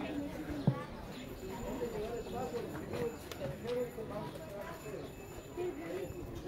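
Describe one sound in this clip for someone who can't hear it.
Voices of men and women chatter all around outdoors.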